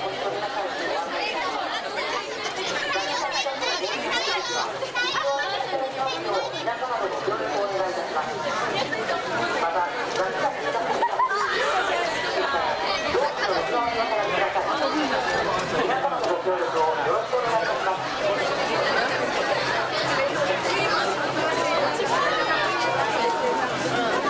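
A large crowd of men and women chatters and calls out all around, close by, outdoors.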